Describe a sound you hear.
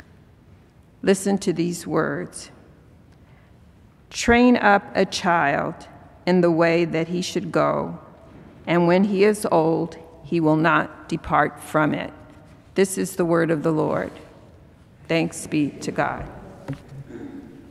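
An elderly woman speaks calmly through a microphone in a large echoing hall.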